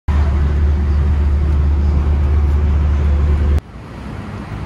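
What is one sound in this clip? A bus engine rumbles loudly and steadily.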